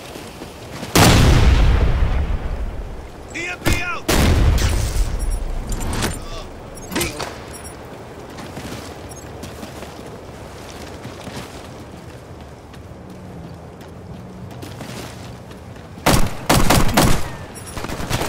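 Gunshots fire loudly in rapid bursts.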